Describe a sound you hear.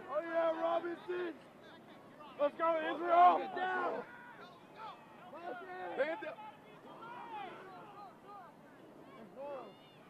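A young man shouts play calls loudly outdoors.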